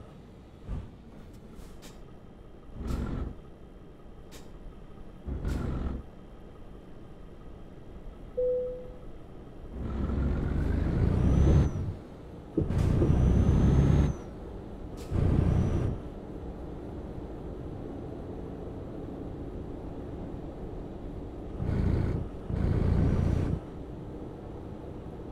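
A truck engine hums steadily at low speed.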